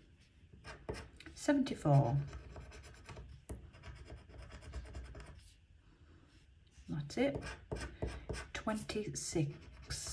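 A metal tool scratches and scrapes across a card.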